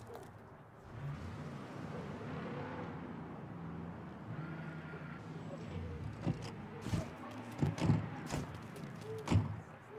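A pickup truck engine idles.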